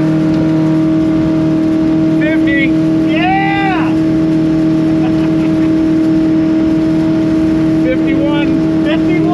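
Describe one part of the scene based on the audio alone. Wind rushes past in a loud, steady roar.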